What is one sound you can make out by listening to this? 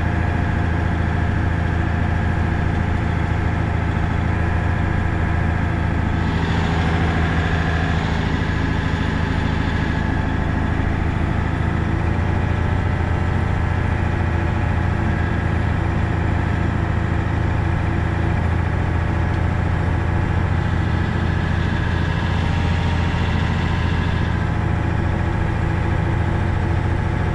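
A truck's diesel engine drones steadily as it drives.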